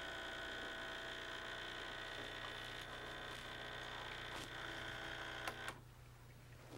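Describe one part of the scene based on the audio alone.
An espresso machine hums and whirs steadily, then stops.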